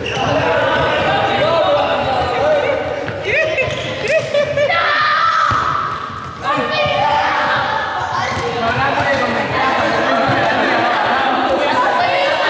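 Children chatter and call out in a large echoing hall.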